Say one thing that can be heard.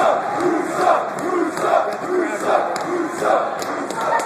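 Boxing gloves thump against a boxer.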